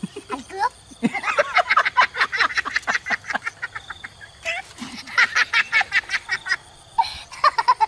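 A boy laughs loudly close by.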